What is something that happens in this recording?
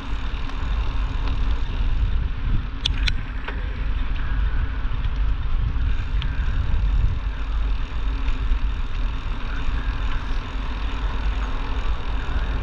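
Wind rumbles over the microphone outdoors.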